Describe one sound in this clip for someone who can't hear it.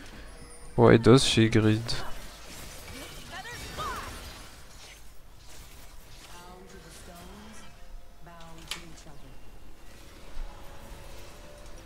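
Game spells whoosh and clash.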